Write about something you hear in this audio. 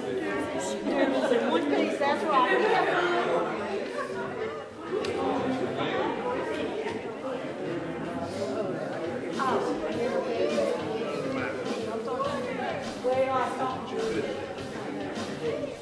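Many men and women talk at once in a large echoing hall.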